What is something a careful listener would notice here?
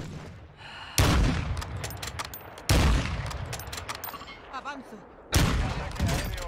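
Rifle shots crack loudly, each followed by a rolling echo.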